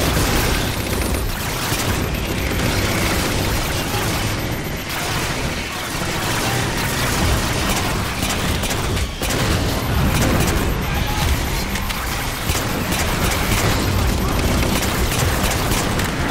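A vehicle engine rumbles and roars.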